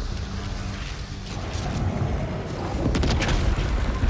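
A burst of crackling energy shatters with a rush.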